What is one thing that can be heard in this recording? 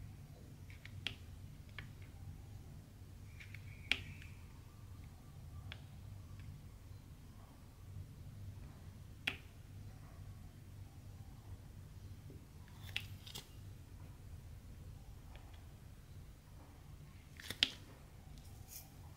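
Small plastic beads click and tap softly as a tool picks them from a tray and presses them down.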